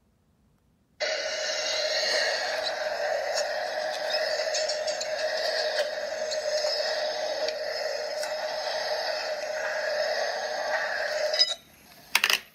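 Game music plays through a small tablet speaker.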